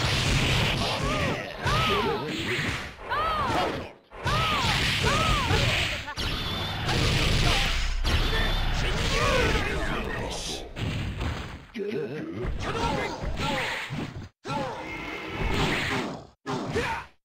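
Game characters shout and yell battle cries.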